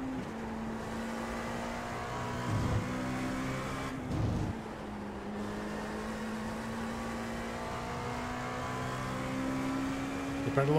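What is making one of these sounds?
A racing car engine drones at high revs, shifting pitch through gear changes.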